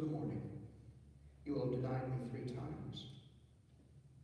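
A man reads aloud through a microphone in a large echoing hall.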